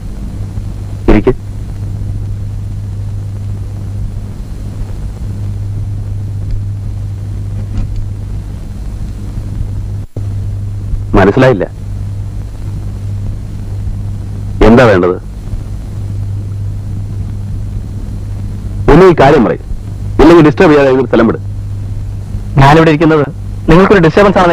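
A man speaks calmly at close range.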